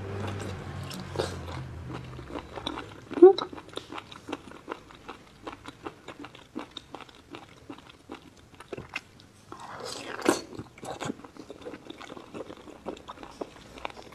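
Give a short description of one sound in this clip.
A woman chews and slurps wet food close to a microphone.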